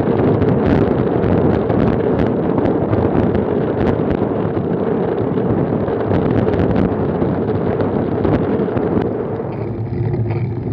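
Wind roars past a road bike riding at speed on asphalt.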